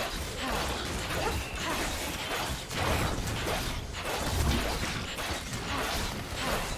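Spell effects whoosh and crackle during a fight.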